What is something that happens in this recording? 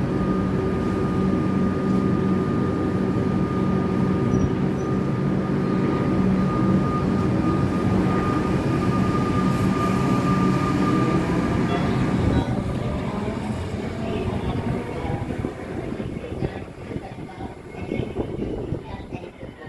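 An electric train rumbles and hums loudly as it pulls out past the platform, then fades into the distance.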